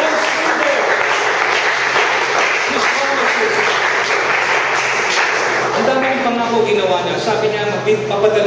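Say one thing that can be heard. A middle-aged man speaks steadily through a microphone and loudspeakers in an echoing room.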